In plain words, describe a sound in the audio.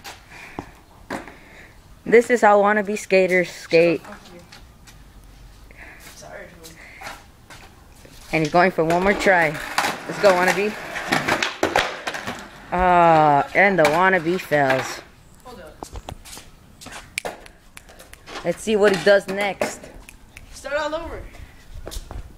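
A skateboard clacks against concrete.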